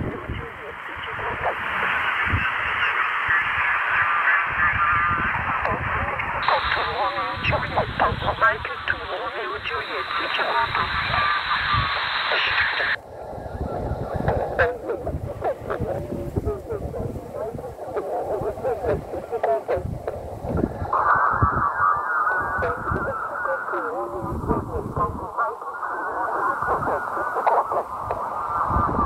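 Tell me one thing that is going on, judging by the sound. A small radio plays a crackly broadcast through its speaker.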